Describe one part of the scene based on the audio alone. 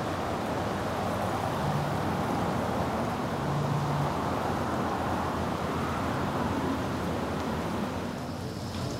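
A swollen, flooded river rushes past.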